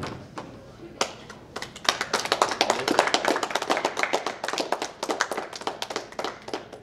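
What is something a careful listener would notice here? A group of people clap their hands rapidly.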